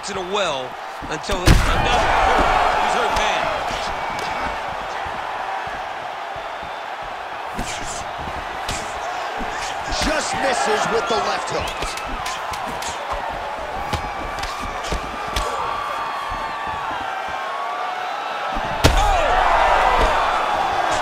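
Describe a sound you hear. A large crowd cheers and roars throughout in a big arena.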